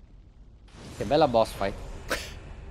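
A man speaks briefly and with animation into a close microphone.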